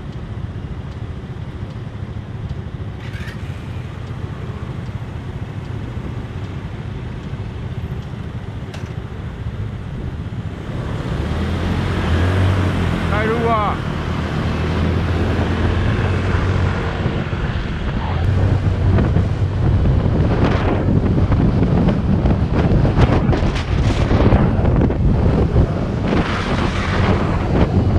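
A scooter engine idles, then revs and hums loudly as it rides along.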